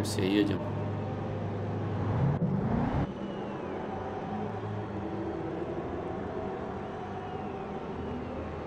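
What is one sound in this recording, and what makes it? A racing car engine hums steadily at idle.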